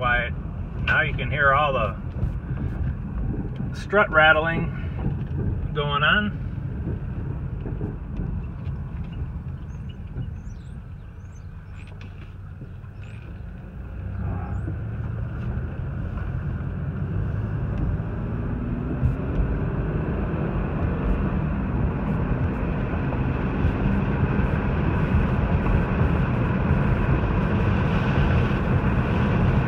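Tyres roll over the road with a steady rumble that grows louder as the car speeds up.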